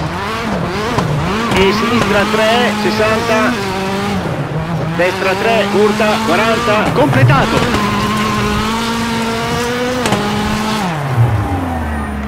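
A rally car engine revs hard at full throttle.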